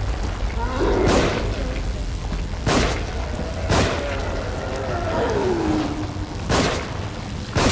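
Gunshots crack loudly, one after another.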